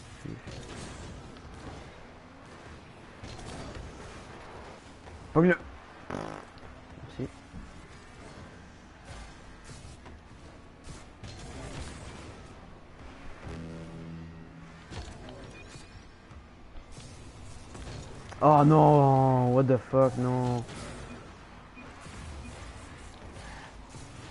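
Game car engines hum and boost with a rushing whoosh.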